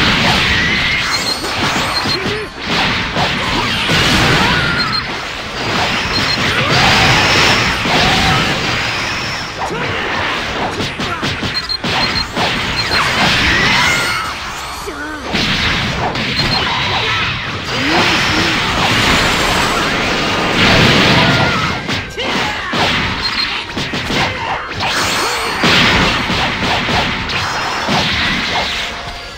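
Game fighters trade rapid punches and kicks.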